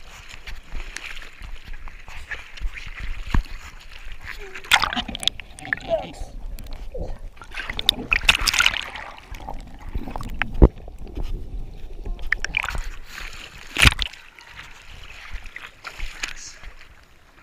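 Hands paddle and splash through water close by.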